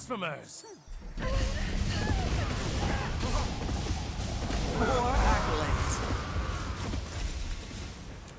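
Magic blasts burst and crackle in a fight.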